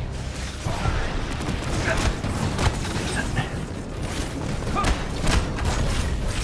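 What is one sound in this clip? Energy blasts fire and hit with sharp bangs.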